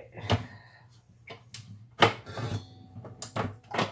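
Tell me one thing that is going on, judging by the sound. A mixer head clicks as it is lowered.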